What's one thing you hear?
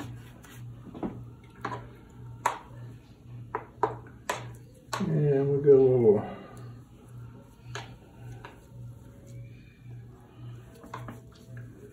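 A brush taps and swirls in a paint pan.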